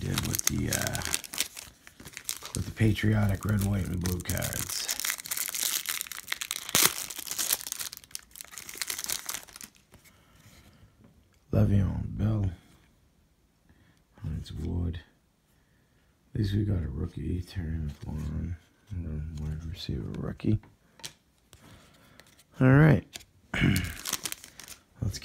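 A foil wrapper crinkles and tears as it is opened by hand.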